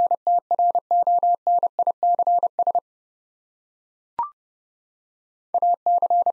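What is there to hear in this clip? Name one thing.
A Morse code key sends quick, steady beeps of short and long tones.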